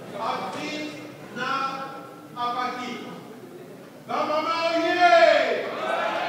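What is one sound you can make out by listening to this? An elderly man speaks with animation into a microphone, in a room with some echo.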